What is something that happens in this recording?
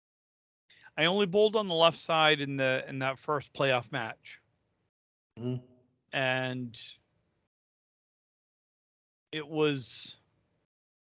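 A man speaks calmly over an online call, close to the microphone.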